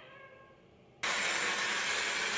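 A hair dryer blows with a loud steady roar.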